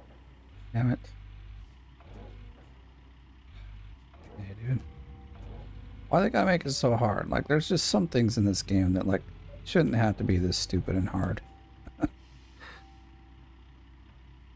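An excavator engine rumbles low and steadily.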